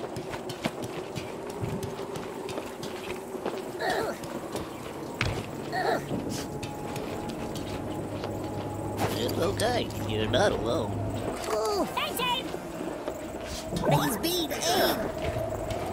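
Footsteps clank on metal walkways.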